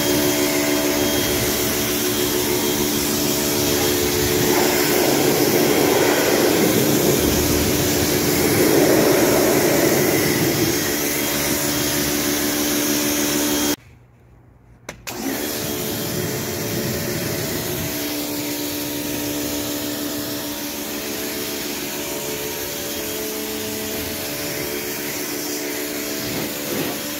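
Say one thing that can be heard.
A jet of water hisses and sprays against wood.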